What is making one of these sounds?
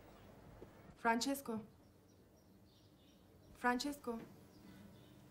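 A young woman calls out a name questioningly.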